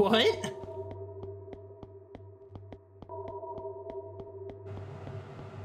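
Footsteps tap steadily along a hard floor.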